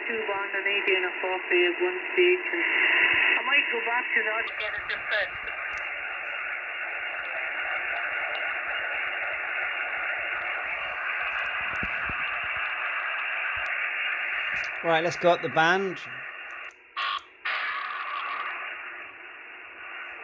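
Static hisses steadily from a radio loudspeaker.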